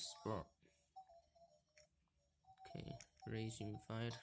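A handheld game console plays short electronic beeps.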